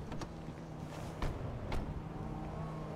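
A car door thumps shut.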